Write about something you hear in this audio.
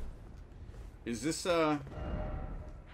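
A middle-aged man speaks briefly and with animation into a close microphone.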